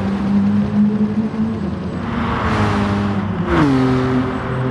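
A race car speeds past with a rushing whoosh.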